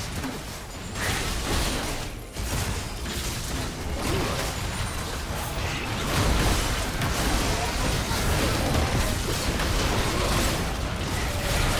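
Game spells blast and crackle in a busy fight.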